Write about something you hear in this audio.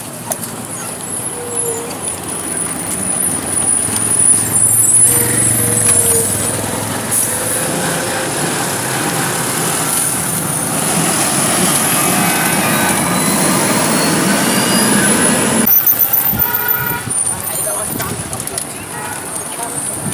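Traffic rumbles along a road outdoors.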